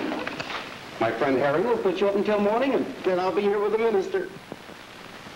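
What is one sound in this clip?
A man speaks close by with a wavering voice.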